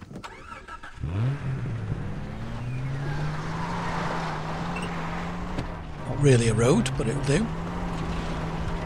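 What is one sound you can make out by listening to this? A car engine starts and idles steadily as the car drives off.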